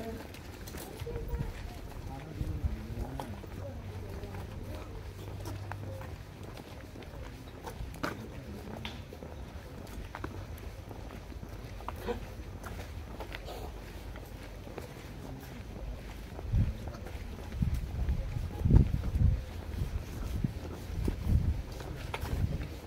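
Footsteps fall on a concrete walkway.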